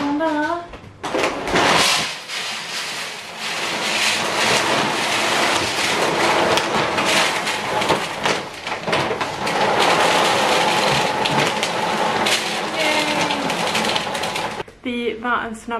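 A plastic bag rustles loudly.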